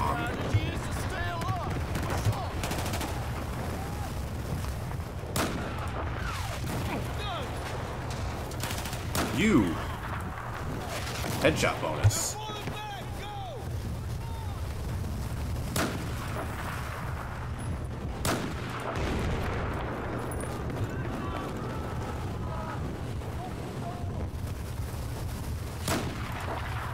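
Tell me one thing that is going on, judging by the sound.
Sniper rifle shots crack sharply now and then.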